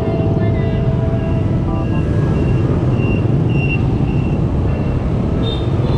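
A scooter engine hums.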